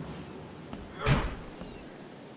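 A loud thud strikes a wooden door.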